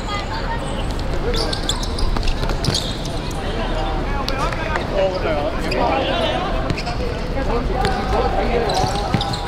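Young men shout to each other on an outdoor pitch.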